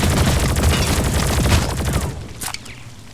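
A rapid-fire gun fires a quick burst of shots.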